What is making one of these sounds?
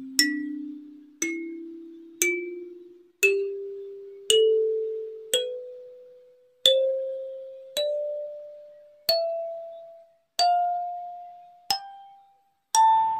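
A kalimba plays single ringing notes, one by one, climbing slowly up a scale.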